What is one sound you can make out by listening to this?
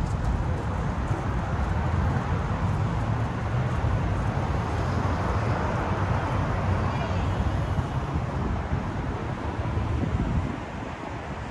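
Traffic rumbles steadily along a busy road below.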